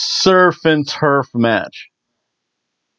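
A middle-aged man speaks emphatically into a nearby microphone.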